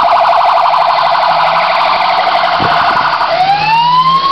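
A fire engine's siren yelps rapidly, close by.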